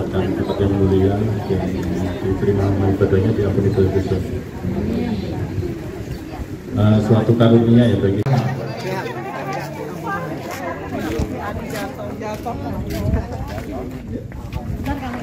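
A crowd of women chatter outdoors.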